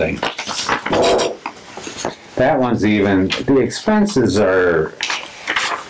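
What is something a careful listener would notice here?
Papers rustle as pages are turned.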